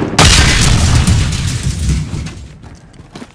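A rifle fires a loud rapid burst up close.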